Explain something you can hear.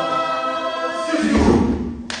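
A group of young men sings a loud held chord in harmony.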